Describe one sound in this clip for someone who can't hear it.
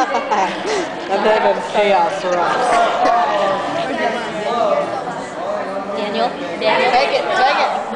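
A group of teenagers chatter.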